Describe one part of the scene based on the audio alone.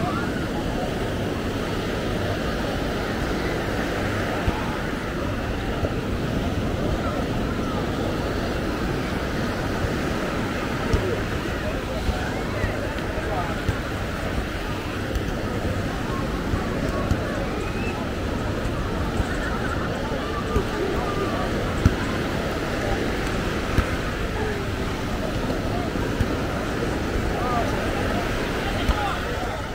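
Waves wash onto the shore nearby.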